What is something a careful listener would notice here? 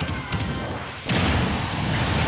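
A heavy punch lands with a loud crack.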